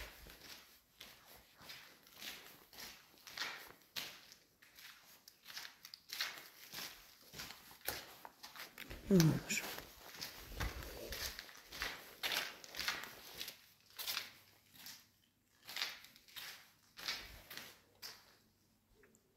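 Footsteps crunch over loose debris on a hard floor.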